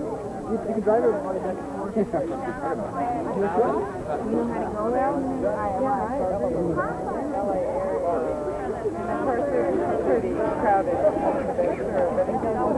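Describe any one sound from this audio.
A crowd of men and women chat and talk over one another outdoors.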